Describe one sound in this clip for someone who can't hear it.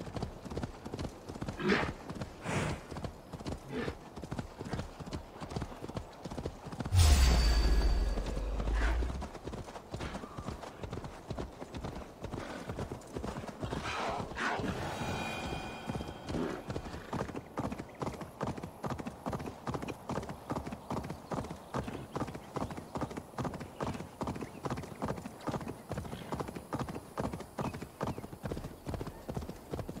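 Hooves of a galloping horse thud in a quick, steady rhythm.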